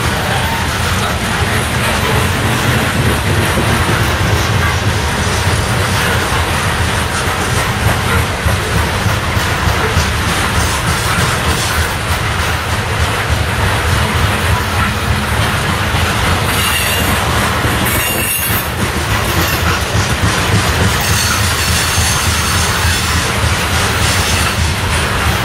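A long freight train rumbles past.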